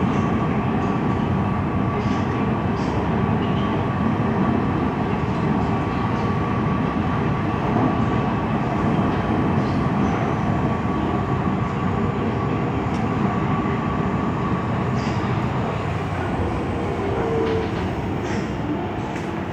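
A train rumbles and hums steadily along its track.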